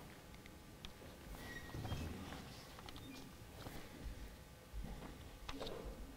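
Paper pages rustle as a man turns them.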